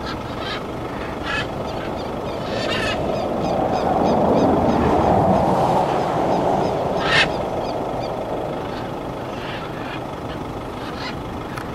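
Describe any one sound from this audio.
Macaws squawk loudly and harshly from a treetop.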